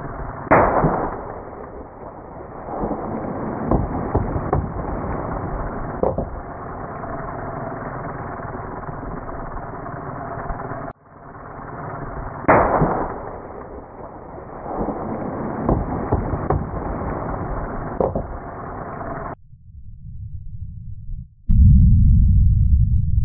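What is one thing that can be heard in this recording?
A loud blast bursts nearby and debris rains down.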